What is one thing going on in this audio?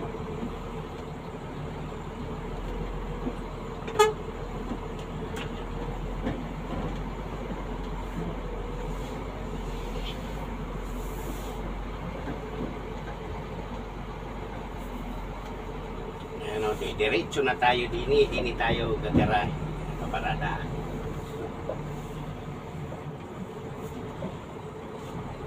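A vehicle's engine hums at low speed, heard from inside the cab.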